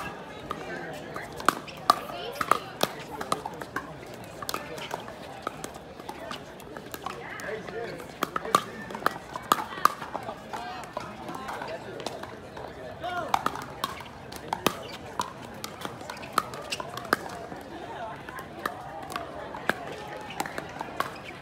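Paddles pop against a plastic ball in quick rallies outdoors.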